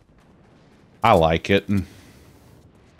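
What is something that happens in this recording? A man speaks briefly and with animation into a close microphone.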